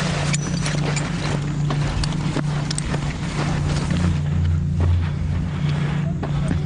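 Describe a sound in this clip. Boots thud and scuff quickly on dry earth.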